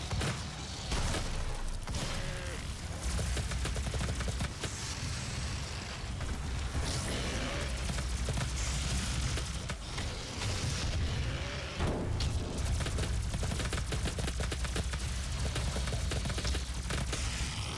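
Energy weapons fire in rapid, crackling bursts.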